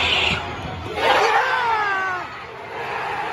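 A large stadium crowd roars in a sudden burst.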